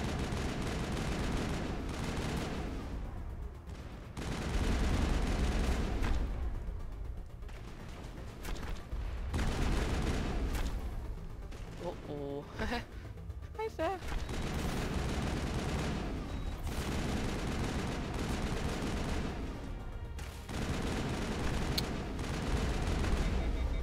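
A rapid-fire energy gun fires in steady bursts.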